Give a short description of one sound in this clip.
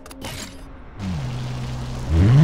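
A car engine hums steadily, then revs up sharply.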